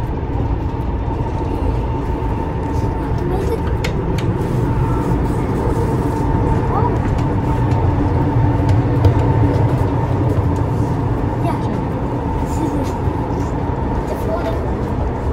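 A train rumbles steadily.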